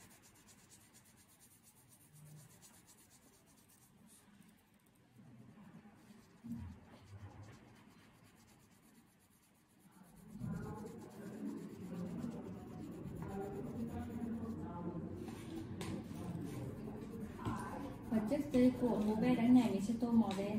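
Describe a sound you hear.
A crayon scratches softly on paper.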